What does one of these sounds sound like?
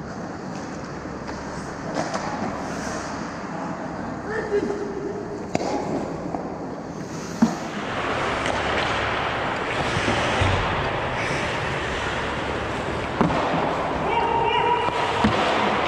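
Skates scrape and hiss across ice.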